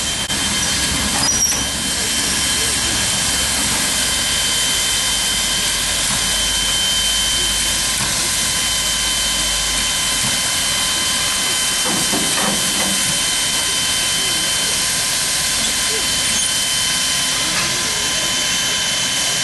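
A steam locomotive hisses steadily outdoors.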